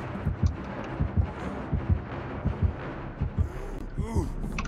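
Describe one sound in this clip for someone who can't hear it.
Footsteps thud on a hollow metal floor.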